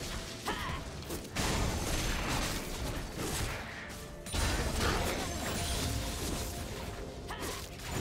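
Game combat effects whoosh and clash as characters fight.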